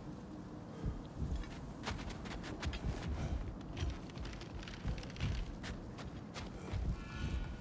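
Footsteps crunch on snow and metal grating.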